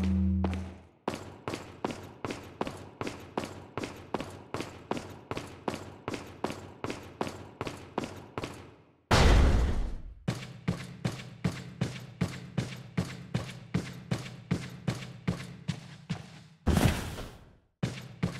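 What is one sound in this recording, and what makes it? Footsteps tread at a steady pace on a hard floor.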